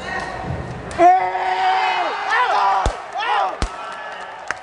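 A ball is kicked hard with sharp thuds in an echoing hall.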